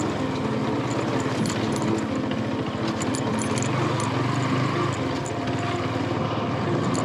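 A motorcycle engine runs steadily, rising and falling slightly in pitch as it rides.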